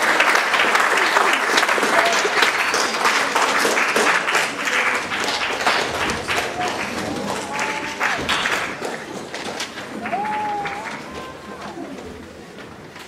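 An audience applauds in a large echoing hall, then the clapping fades away.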